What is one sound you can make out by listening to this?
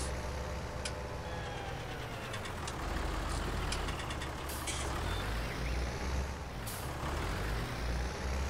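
A tractor engine rumbles steadily as it drives slowly.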